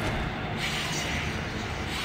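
A jet thruster roars briefly.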